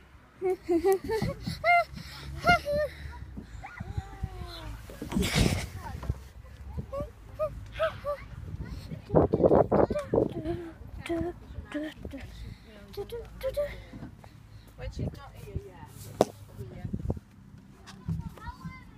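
A young girl talks with animation close to a phone microphone.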